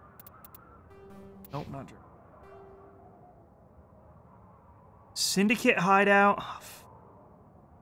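Electronic menu tones chirp and bleep.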